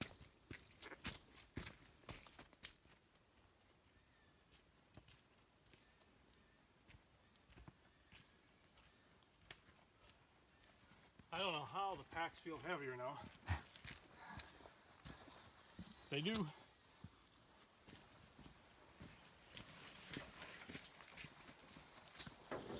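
Footsteps crunch on a rocky trail.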